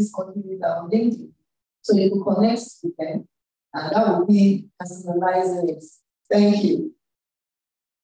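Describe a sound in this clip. A young woman speaks with animation into a microphone, heard through an online call.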